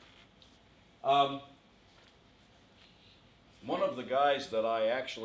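An older man speaks into a microphone in a large room, pausing between phrases.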